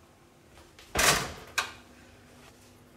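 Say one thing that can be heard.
A metal roasting tray clanks onto an oven rack.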